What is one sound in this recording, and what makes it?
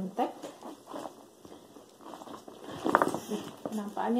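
A zipper on a bag is pulled open.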